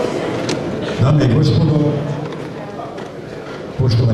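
A man speaks loudly into a microphone in a large hall.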